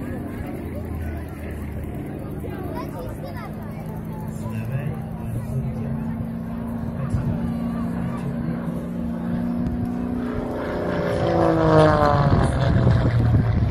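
A propeller plane's engine drones overhead, then roars louder and drops in pitch as it passes by.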